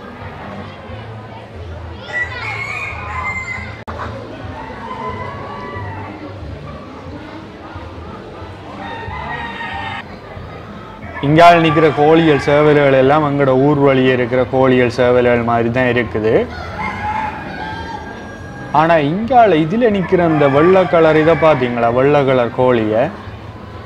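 Chickens cluck in an echoing hall.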